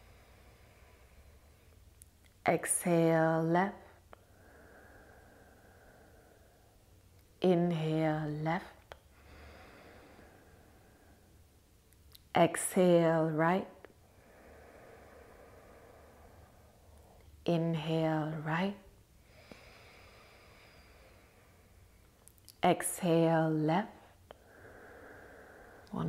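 A young woman breathes slowly and audibly through her nose.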